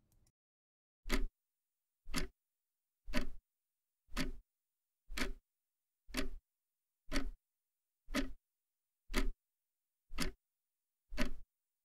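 A clock ticks loudly once every second.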